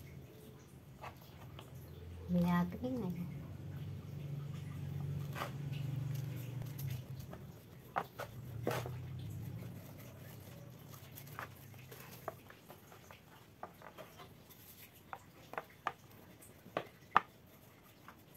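Light taps and knocks sound on a plastic board.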